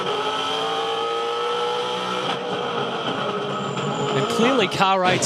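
A race car engine roars loudly at high speed, heard from on board.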